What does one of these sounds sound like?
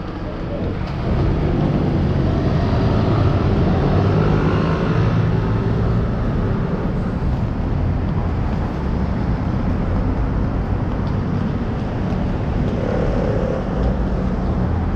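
Suitcase wheels rumble and rattle over paving stones.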